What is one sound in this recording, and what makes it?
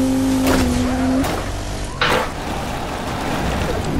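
A quad bike crashes and tumbles over with a thud.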